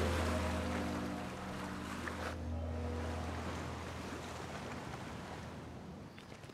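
Sea waves wash softly.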